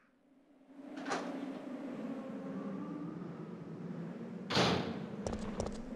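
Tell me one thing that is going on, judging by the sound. A heavy door creaks slowly open.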